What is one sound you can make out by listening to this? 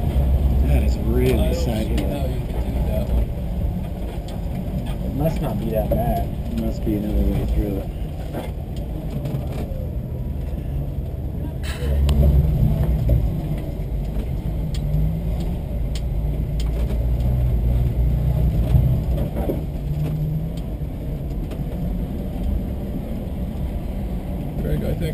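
A vehicle's body creaks and rattles over bumpy rock.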